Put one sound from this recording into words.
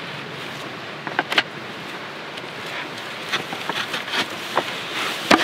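A plastic buckle clicks on a strap.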